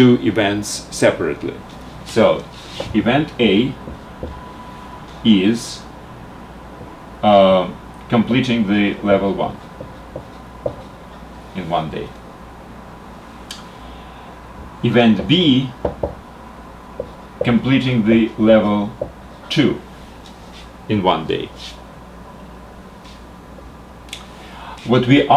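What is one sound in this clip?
An elderly man speaks calmly and clearly, as if lecturing, close to a microphone.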